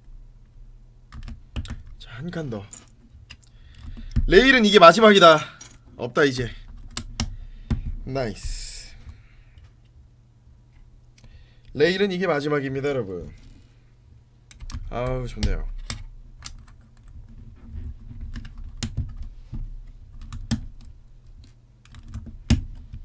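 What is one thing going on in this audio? Plastic toy bricks click and rattle as they are snapped together.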